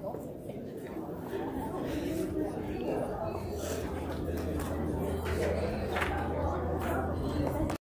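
A band plays music through loudspeakers in a large echoing hall.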